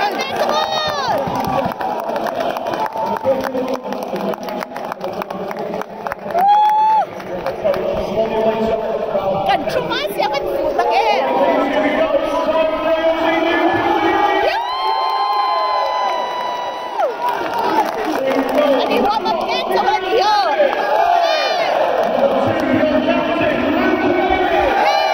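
A large crowd chatters and calls out loudly in a stadium.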